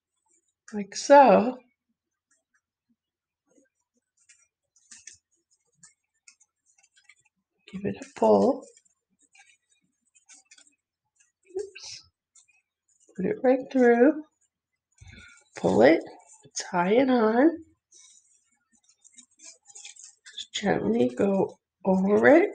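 Paper rustles and crinkles softly as hands handle it.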